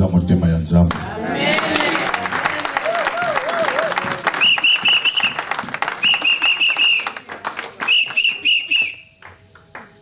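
Women clap their hands.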